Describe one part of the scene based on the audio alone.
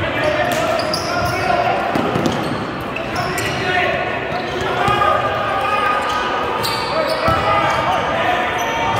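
Spectators talk and shout in a large echoing gym.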